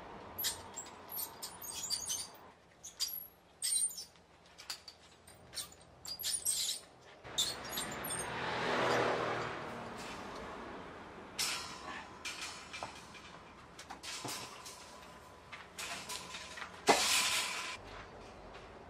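Metal rods clink and scrape against each other on a concrete floor.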